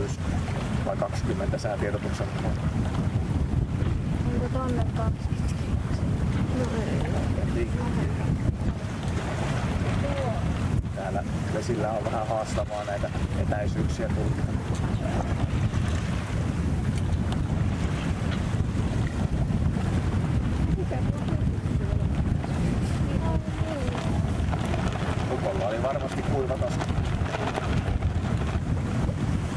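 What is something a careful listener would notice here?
Strong wind buffets the microphone outdoors.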